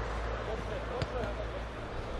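A football thuds as a player kicks it.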